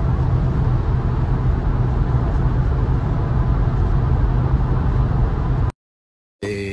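A car engine hums steadily with tyre rumble on the road.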